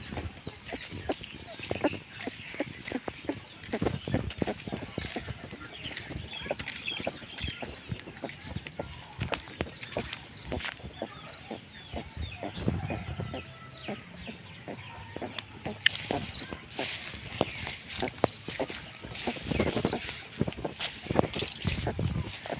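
Footsteps crunch on dry ground and grass.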